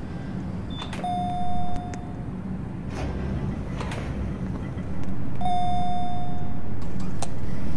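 An elevator chime dings.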